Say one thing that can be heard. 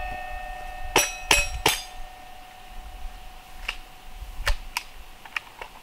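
Pistol shots crack sharply outdoors, one after another.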